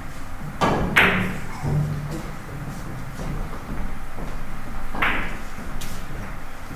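Billiard balls knock together and roll on the table.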